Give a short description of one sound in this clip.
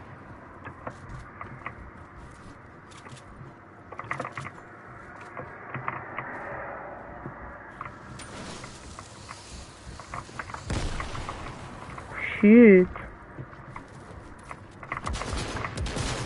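Footsteps clatter on metal and wood.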